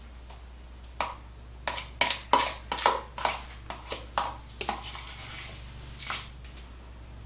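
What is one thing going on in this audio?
A spoon knocks repeatedly against a bowl.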